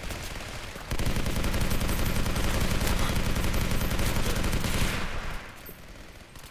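A machine gun fires in a rapid, steady burst.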